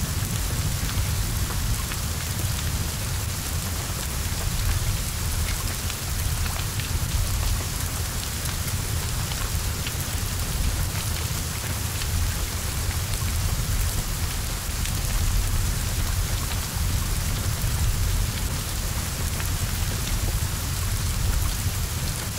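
Flames roar and crackle from a burning car.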